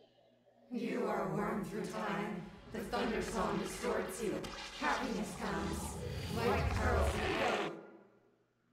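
A woman speaks slowly and intensely, close up.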